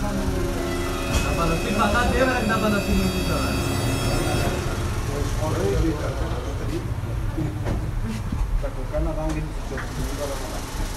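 Several men talk over one another indoors.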